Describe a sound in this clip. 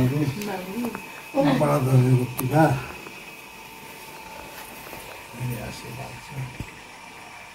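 An elderly man speaks softly nearby.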